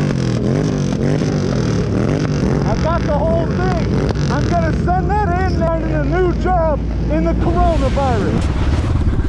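A motorcycle engine idles and revs close by.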